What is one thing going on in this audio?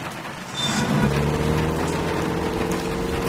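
A car engine hums as it drives.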